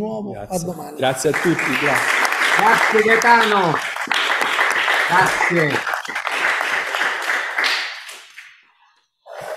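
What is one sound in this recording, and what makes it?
Applause rings out in a room.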